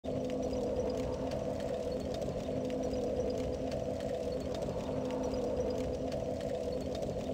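A small fire crackles and pops steadily.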